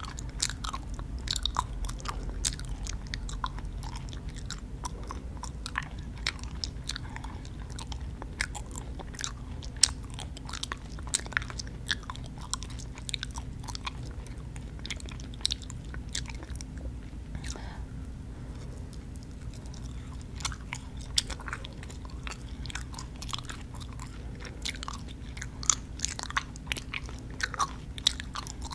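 A woman crunches crisp snacks close to a microphone.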